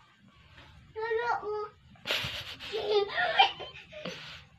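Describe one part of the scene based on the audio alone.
A young girl squeals and shouts excitedly nearby.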